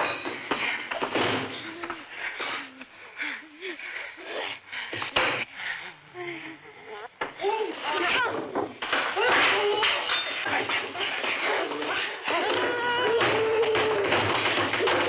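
A young girl screams and shrieks wildly.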